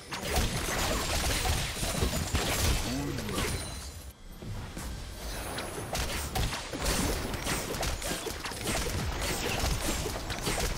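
Spells blast and weapons clash in a busy fantasy game battle.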